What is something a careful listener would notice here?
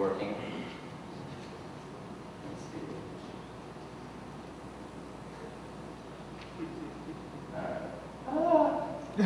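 A man speaks through a microphone in a large hall, pausing between phrases.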